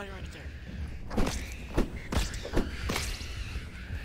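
A club thuds in heavy blows.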